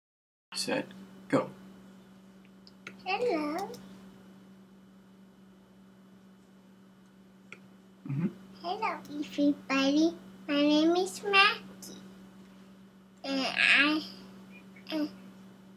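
A young child talks with excitement through an online call.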